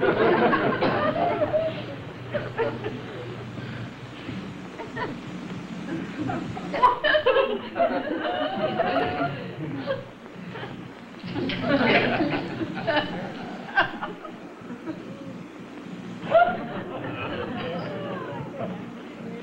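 A middle-aged woman talks calmly nearby, with pauses.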